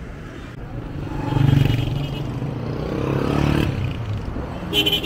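A van engine rumbles as it passes close by.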